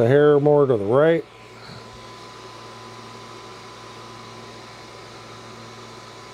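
A laser engraver hums steadily with a quiet whirring fan.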